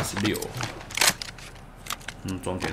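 A rifle's metal parts clack as hands handle it.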